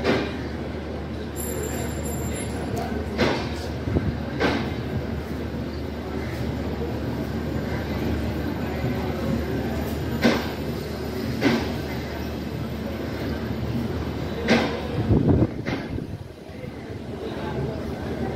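A passenger train rolls steadily along the track with a low rumble.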